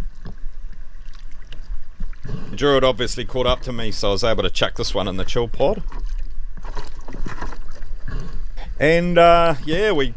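Small waves lap and splash against an inflatable boat.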